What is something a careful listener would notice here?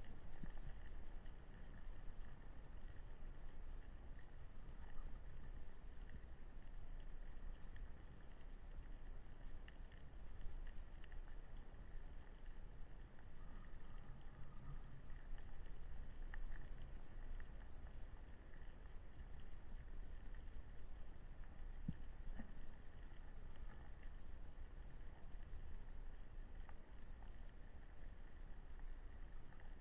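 Underwater, a low muffled rumble and faint crackling fill the water.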